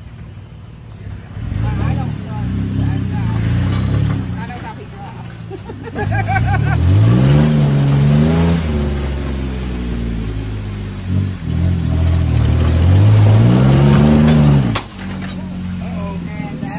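Tyres scrape and crunch over rocks and logs.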